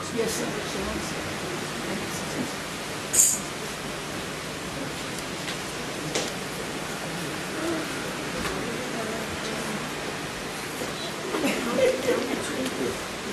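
A room full of people murmurs and chatters.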